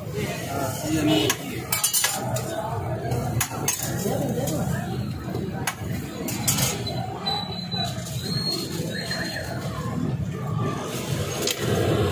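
Patties sizzle on a hot griddle.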